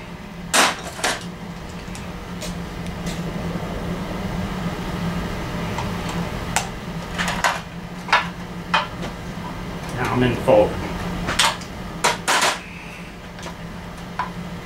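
Metal tools clank and knock close by.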